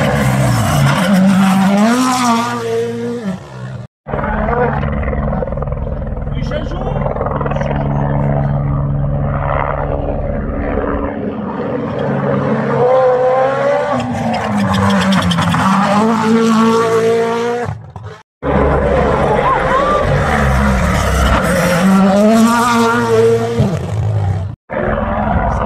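A rally car engine roars and revs hard as it speeds past close by.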